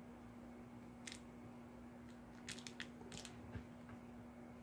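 Small plastic parts click.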